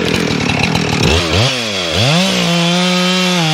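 A chainsaw revs up loudly and whines at high speed.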